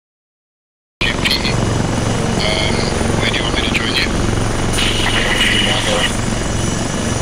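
A helicopter's rotor thumps and its engine drones nearby.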